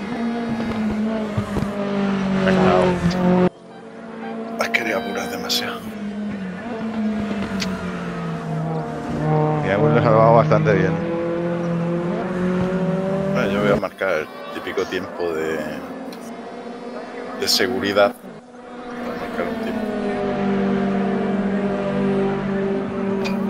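A race car engine roars steadily, its pitch rising and falling as it shifts gears.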